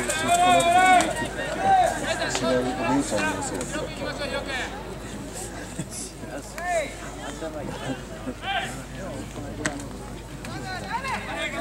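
Young spectators chatter and call out close by.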